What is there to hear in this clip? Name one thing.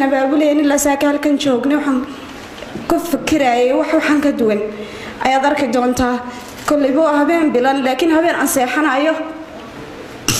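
A young woman speaks close to a microphone in a high, sobbing voice.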